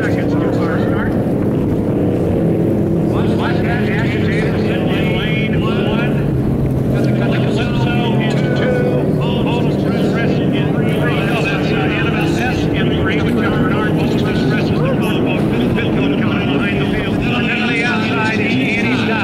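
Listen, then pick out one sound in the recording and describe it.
Racing powerboat engines roar steadily in the distance.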